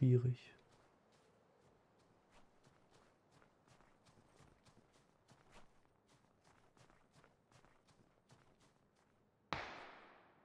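Footsteps patter quickly and steadily over rocky ground.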